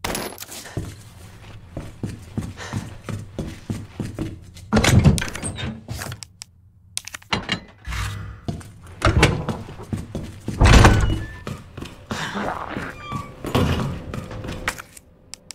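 Footsteps tread on a hard floor at a walking pace.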